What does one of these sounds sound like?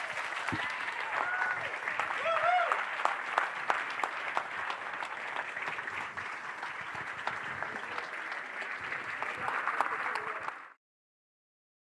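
An audience applauds steadily in a room.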